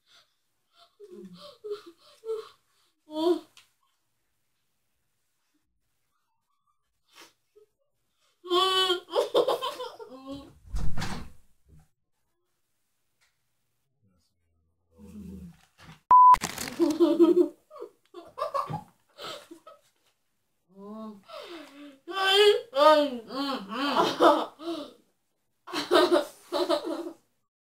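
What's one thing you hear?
Two boys talk and laugh with animation close by.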